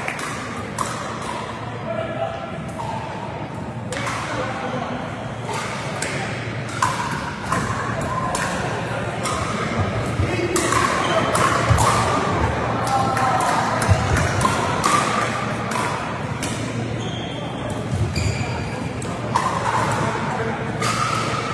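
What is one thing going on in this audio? Adult players chatter and call out in the distance.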